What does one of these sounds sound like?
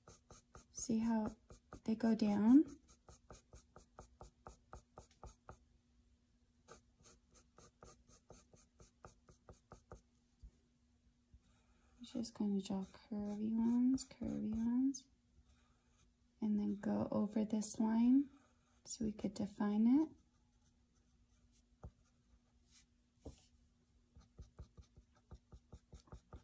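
A pencil scratches across paper in quick, rhythmic strokes.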